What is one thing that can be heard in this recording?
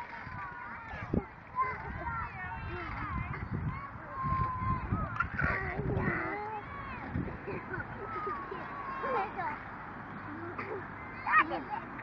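Young children squeal and babble playfully close by.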